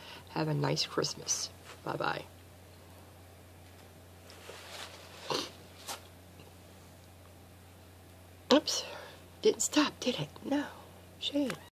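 A middle-aged woman talks calmly and close to a microphone, with pauses.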